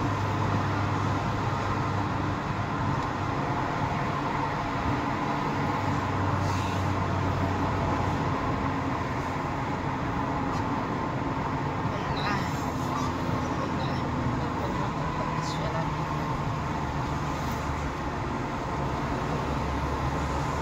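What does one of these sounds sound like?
Traffic rumbles along a road outdoors.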